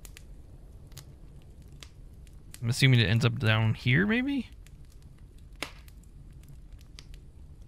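A fire crackles and pops softly.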